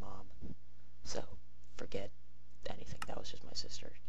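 A game menu button clicks once.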